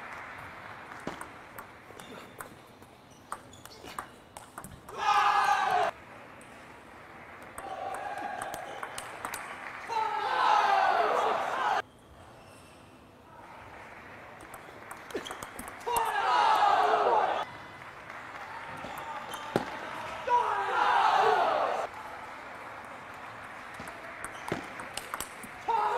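A ping pong ball clicks back and forth off paddles and a table.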